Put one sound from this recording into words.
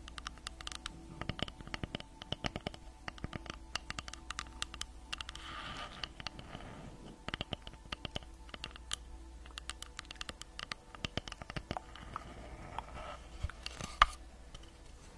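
Fingernails tap and scratch on wood close to a microphone.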